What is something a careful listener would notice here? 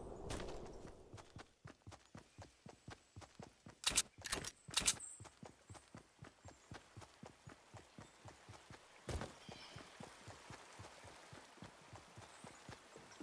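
Footsteps patter quickly and steadily over grass and wood.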